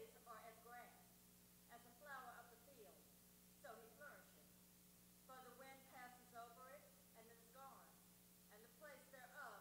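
A man speaks calmly into a microphone, heard through loudspeakers in an echoing room.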